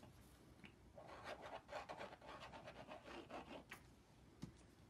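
A paintbrush scrubs against a canvas.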